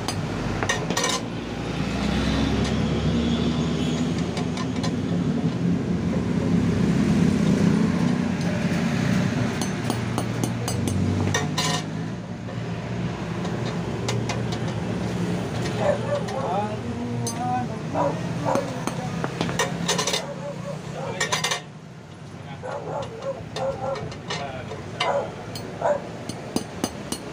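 A hammer strikes metal with sharp, ringing clanks.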